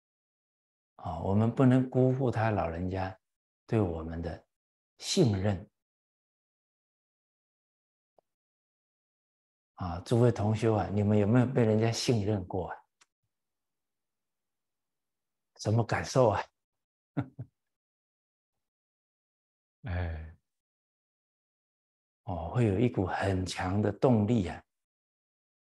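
An elderly man speaks calmly and cheerfully into a microphone, in short phrases with pauses.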